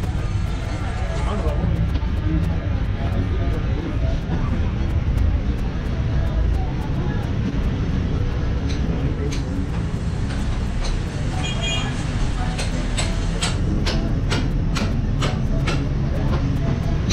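Footsteps scuff along a hard floor.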